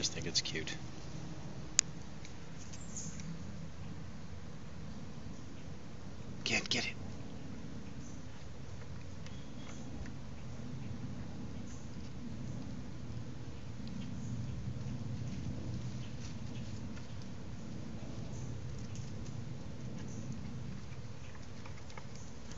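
Dry leaves rustle as a puppy digs.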